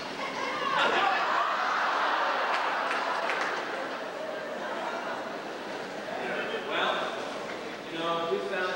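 A large choir sings together in a big echoing hall.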